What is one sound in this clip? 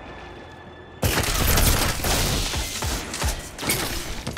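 A loud explosion bursts suddenly and rumbles.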